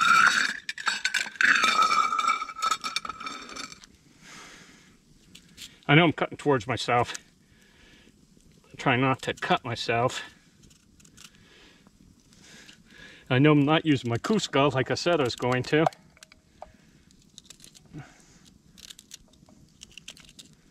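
A campfire crackles and pops close by.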